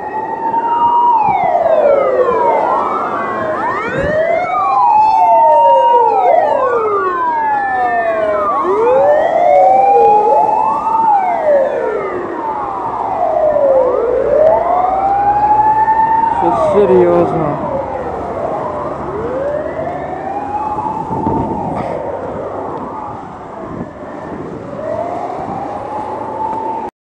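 Several sirens wail over one another, rising and falling steadily.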